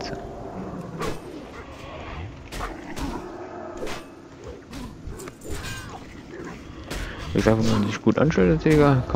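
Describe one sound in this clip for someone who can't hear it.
Weapon blows and spell impacts crack in quick bursts during a fight.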